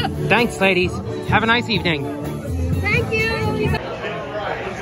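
Two middle-aged women laugh and talk excitedly close by, outdoors.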